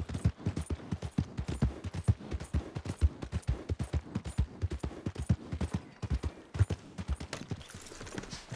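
Horse hooves thud rapidly on a dirt path.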